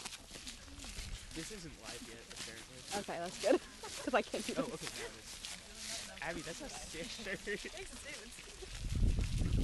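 Young people chat quietly nearby.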